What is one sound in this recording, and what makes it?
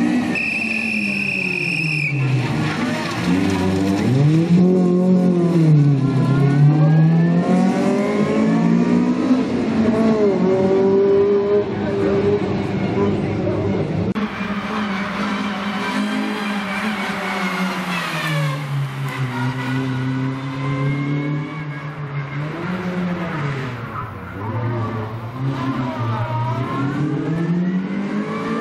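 A rally car's engine revs hard and shifts up and down through the gears as the car races past.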